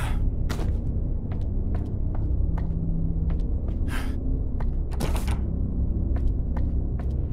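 Footsteps fall steadily on a hard floor.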